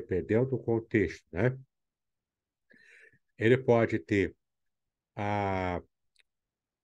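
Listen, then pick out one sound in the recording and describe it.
A man speaks calmly and closely through a microphone, drawing out a long vowel at the end.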